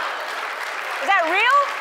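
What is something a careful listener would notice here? A woman exclaims loudly and cheerfully into a microphone.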